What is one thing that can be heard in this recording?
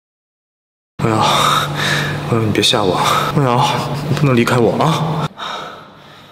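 A young man speaks in a low, pleading voice.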